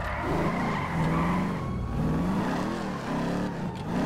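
Tyres screech as a car turns sharply.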